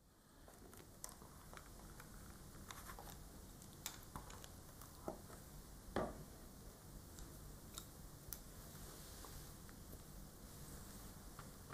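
Lips and tongue click softly near a microphone.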